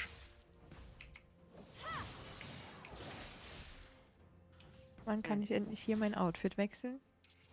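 Magic spells whoosh and crackle during a fight in a video game.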